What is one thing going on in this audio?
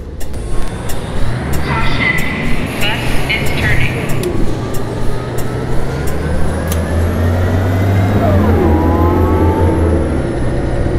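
A diesel city bus pulls away and accelerates.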